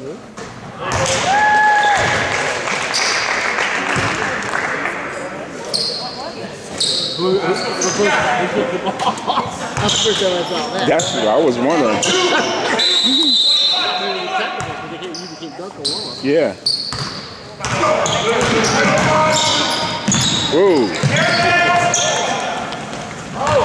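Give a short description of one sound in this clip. A crowd cheers and shouts in an echoing gym.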